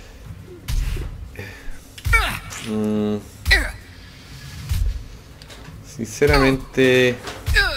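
A young man talks animatedly close to a microphone.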